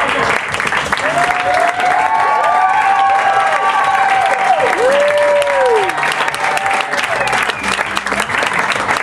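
Audience members whoop and cheer.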